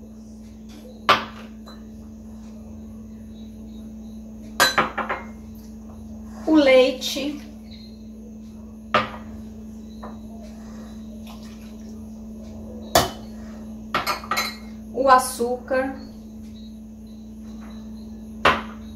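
Glass bowls clink against a metal pot and the counter.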